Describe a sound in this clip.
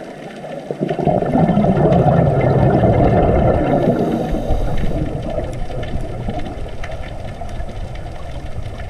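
Scuba bubbles gurgle and rumble underwater as a diver breathes out.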